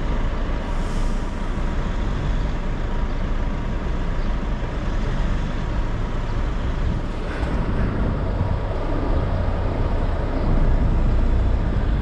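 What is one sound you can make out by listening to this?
Cars drive slowly past on the street.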